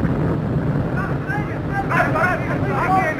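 Men shout as they charge.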